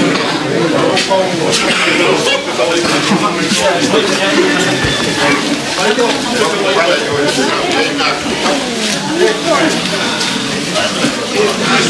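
A crowd of men and women chatters.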